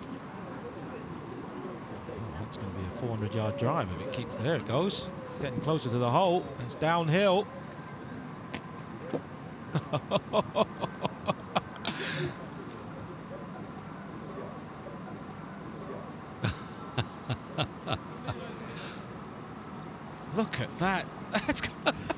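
A golf ball rolls and bounces on asphalt.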